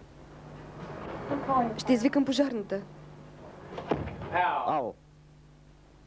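A young man speaks and laughs, close by.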